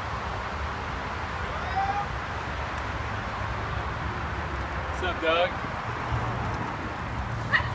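Bicycle tyres roll along a paved road.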